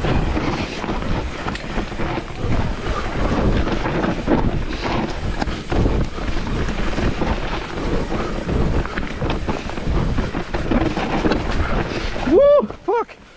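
Bike tyres rumble and crunch over a bumpy dirt trail.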